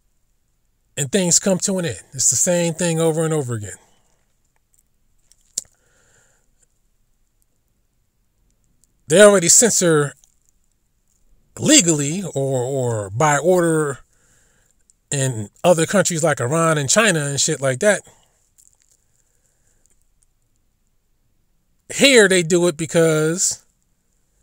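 A man speaks in short, emphatic bursts close to a microphone, with pauses between them.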